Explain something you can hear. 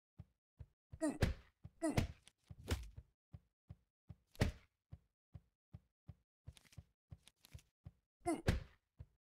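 Quick soft footsteps tap steadily.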